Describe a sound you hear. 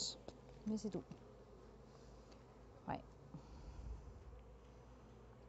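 Bees buzz softly and steadily.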